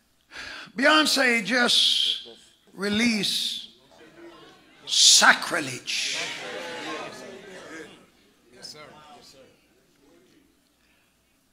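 An older man preaches with emphasis into a microphone.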